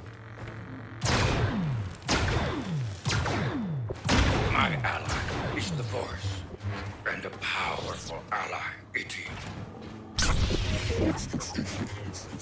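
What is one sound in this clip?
Lightsaber strikes clash with sharp crackles.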